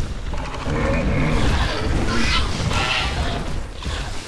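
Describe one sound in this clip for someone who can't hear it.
A large creature roars and growls.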